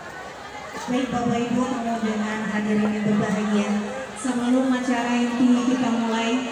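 A woman sings through loudspeakers.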